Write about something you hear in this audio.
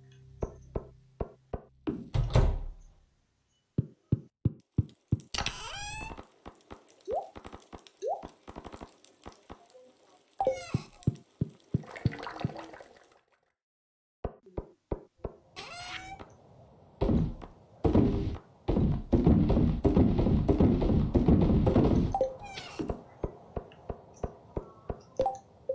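Footsteps tap in a quick, even rhythm.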